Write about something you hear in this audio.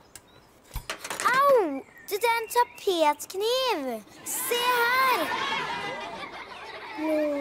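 A young boy speaks and exclaims, close by.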